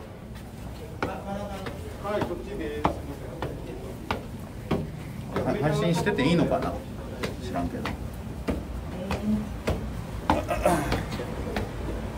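A young man talks casually, close to the microphone.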